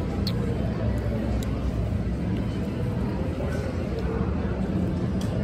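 A plastic spoon scrapes against a plate of rice.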